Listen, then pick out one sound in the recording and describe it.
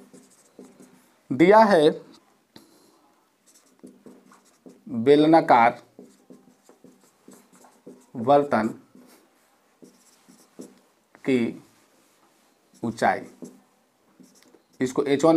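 A marker scratches on a whiteboard.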